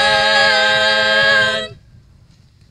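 Several women sing together in harmony through a microphone, holding a final note.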